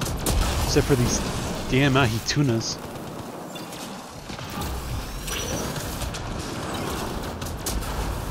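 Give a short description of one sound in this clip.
Electric bursts crackle and zap.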